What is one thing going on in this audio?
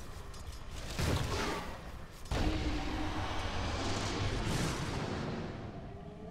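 Game spells and weapon blows crash and whoosh in a fight.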